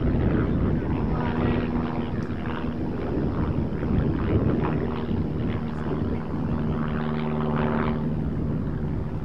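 Men call out to each other from a distance, outdoors.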